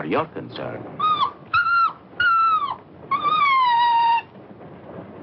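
A small dog whines.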